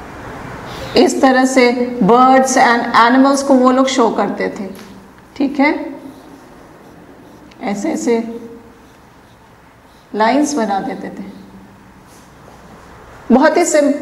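A woman speaks calmly and clearly into a clip-on microphone.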